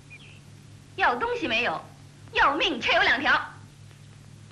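A young woman speaks defiantly.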